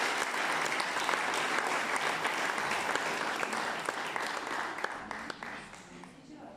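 A crowd applauds in an echoing room.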